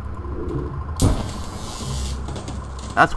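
An explosion bursts with a loud crackling blast.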